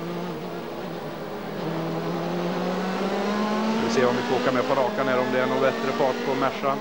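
A racing car engine roars loudly from inside the car, its pitch climbing as it accelerates.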